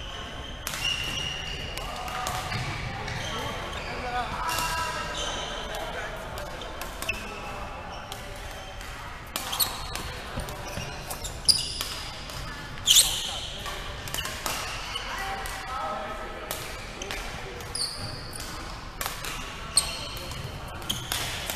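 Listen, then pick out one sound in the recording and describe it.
Men call out to each other across an echoing hall.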